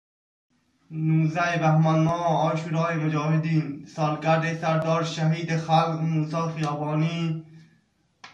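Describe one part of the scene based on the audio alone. A man chants slogans loudly, close by.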